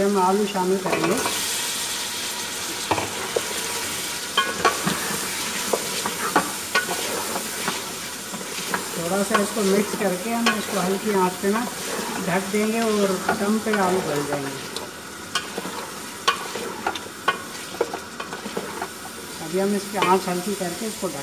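Food sizzles in a hot pot.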